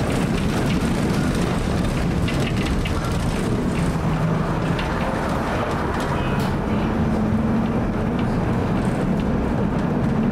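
Traffic hums on the street nearby.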